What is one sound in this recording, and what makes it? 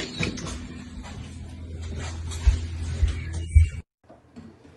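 A cat thumps as it lands on a soft bed.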